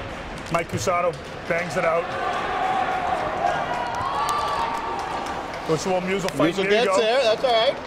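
Spectators shout and cheer loudly in a large echoing rink.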